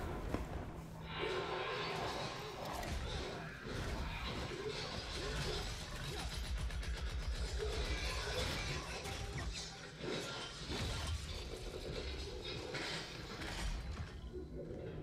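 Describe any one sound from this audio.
An energy blast roars and crackles.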